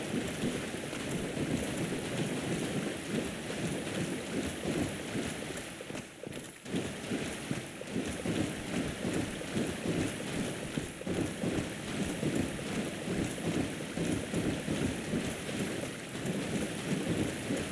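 Footsteps splash quickly through shallow water in an echoing stone tunnel.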